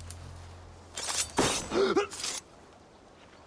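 A blade strikes flesh with a sharp, heavy hit.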